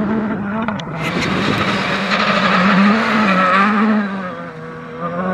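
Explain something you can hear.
Gravel sprays and rattles under a rally car's tyres.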